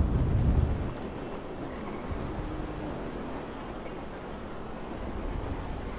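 Leaves and branches rustle as a body crashes through a tree.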